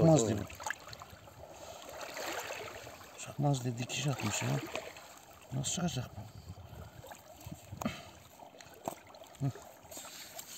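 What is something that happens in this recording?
Hands rub and handle a wet fish.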